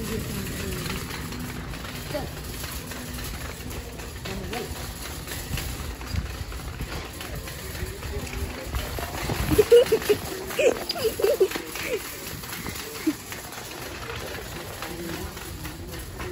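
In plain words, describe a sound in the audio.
A shopping cart rolls and rattles across a hard floor.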